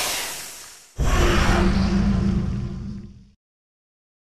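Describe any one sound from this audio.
A burst of noise roars and then fades away.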